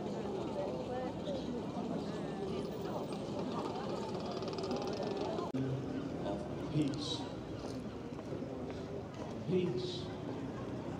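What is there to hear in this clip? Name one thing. A large outdoor crowd murmurs and chatters.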